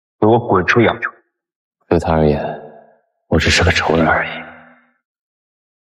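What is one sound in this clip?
A young man speaks in short, intense lines.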